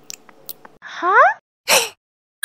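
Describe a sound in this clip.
A cartoon creature squeals happily in a high voice.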